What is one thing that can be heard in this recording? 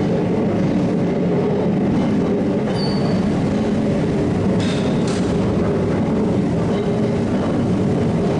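A large winding machine rumbles and hums steadily.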